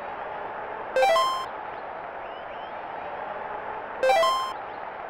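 Short electronic menu beeps sound.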